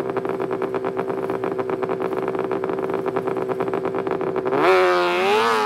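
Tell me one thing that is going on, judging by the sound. A snowmobile engine idles loudly close by.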